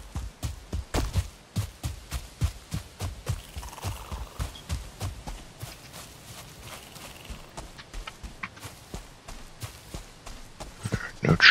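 Footsteps tread quickly through grass.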